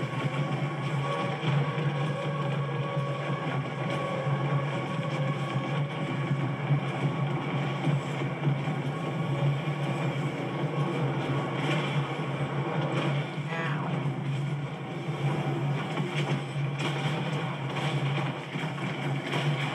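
Gunfire and explosions from a game crackle and boom through a television speaker.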